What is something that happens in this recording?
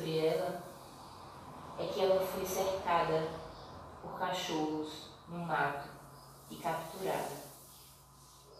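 A woman speaks calmly and slowly, close by.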